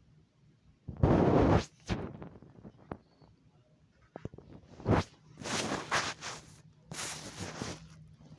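A phone rubs and bumps against the microphone.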